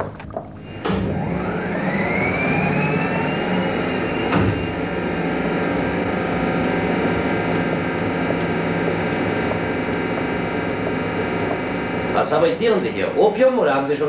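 A machine hums and whines, rising in pitch and then holding steady.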